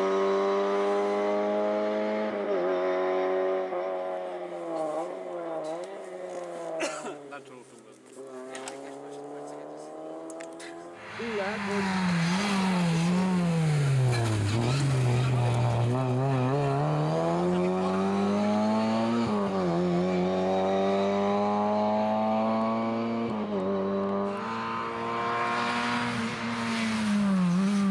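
A rally car engine roars and revs up and down as the car speeds along the road.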